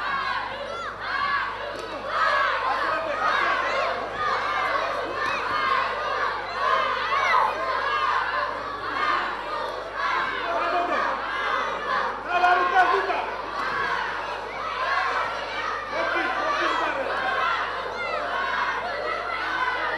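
A crowd of men and boys shouts and cheers loudly in an echoing hall.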